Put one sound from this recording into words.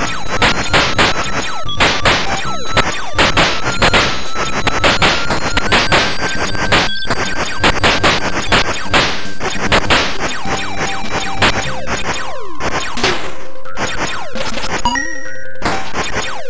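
Video game music plays with a quick beat.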